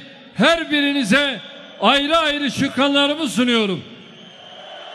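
An elderly man speaks forcefully into a microphone in a large echoing hall.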